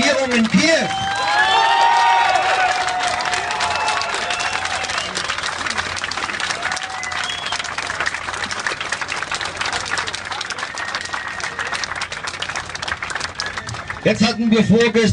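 A crowd claps and cheers outdoors.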